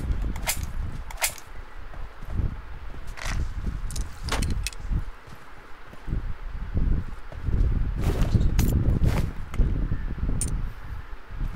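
Short sharp clicks sound as items are picked up.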